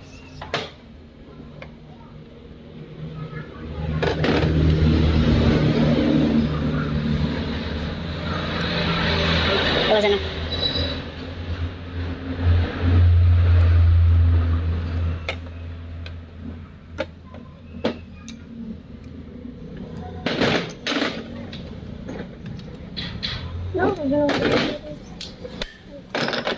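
Metal tools and parts clink and tap.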